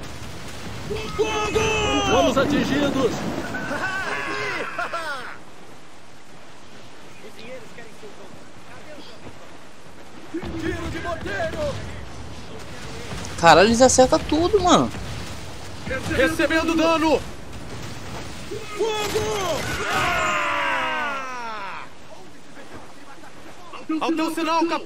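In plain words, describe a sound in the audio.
Waves crash and churn on a stormy sea.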